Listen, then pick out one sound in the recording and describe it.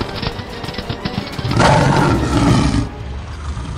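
Heavy animal paws gallop across the ground.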